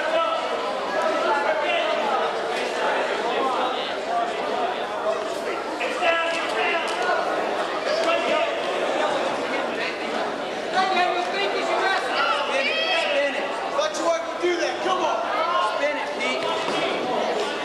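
A crowd of spectators talks and shouts throughout a large echoing gym.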